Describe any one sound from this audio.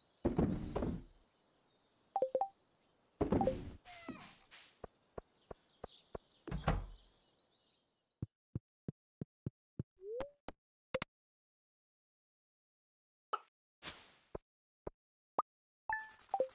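Short electronic clicks and chimes sound as game menus open and close.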